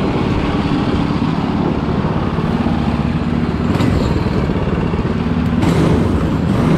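A twin-engine racing kart idles close by.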